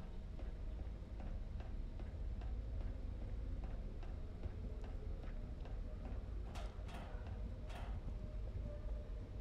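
Footsteps clang on a metal walkway at a steady walking pace.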